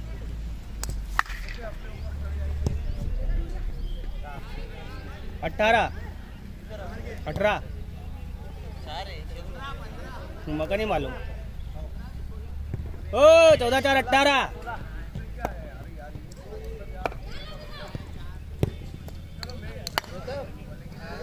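A cricket bat knocks against a ball.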